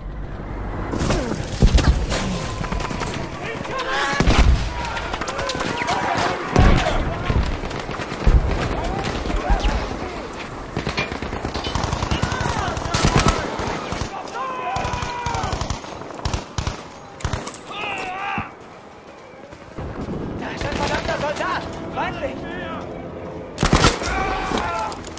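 Loud explosions boom nearby.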